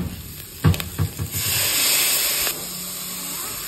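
Water pours into a pot.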